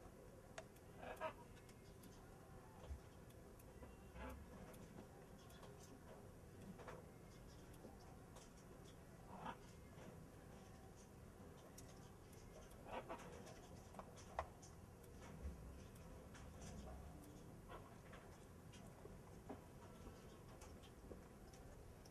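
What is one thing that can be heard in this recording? A parrot gives short chirps and squawks now and then.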